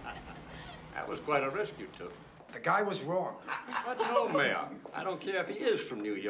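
Several adult men and women talk around a dinner table.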